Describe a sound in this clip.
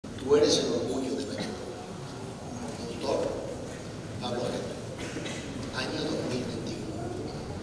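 An orchestra plays in a large echoing church.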